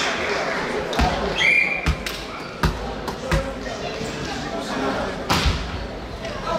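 A volleyball thumps off players' hands in a large echoing hall.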